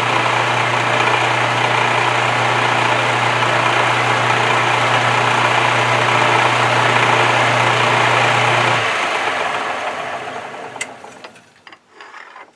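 A lathe motor hums steadily and then winds down.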